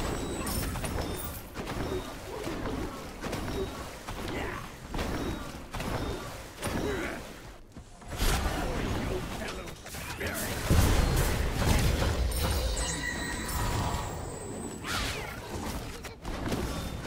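Fantasy game spells whoosh and crackle during a fight.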